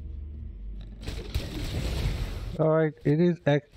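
A magic blast bursts with a loud rushing whoosh.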